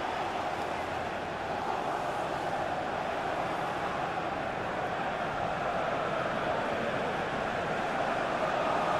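A large stadium crowd roars and cheers steadily, growing slightly louder.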